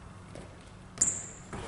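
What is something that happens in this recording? A sneaker squeaks sharply on the floor.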